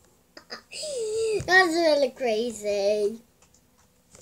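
A young boy speaks up close in a high, playful voice.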